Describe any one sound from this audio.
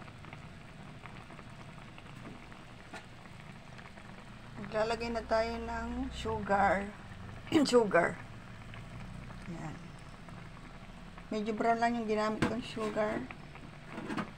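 Sauce bubbles and simmers gently in a pan.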